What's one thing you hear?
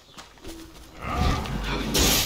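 A heavy blade swings and clashes against a weapon.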